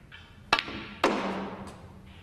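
Snooker balls clack together.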